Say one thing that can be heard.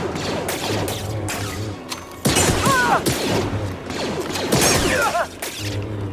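Blaster shots fire and zap in quick bursts.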